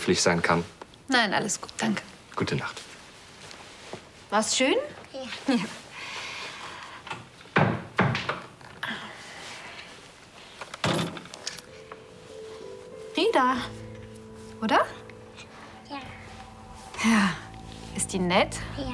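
A young woman speaks warmly and cheerfully nearby.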